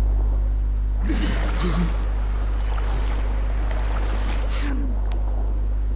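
Water splashes and churns with swimming strokes.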